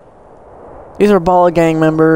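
A man speaks with a low, calm voice close by.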